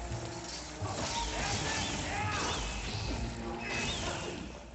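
A creature screeches.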